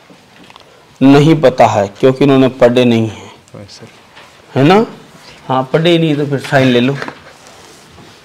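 A man reads out loud from a sheet.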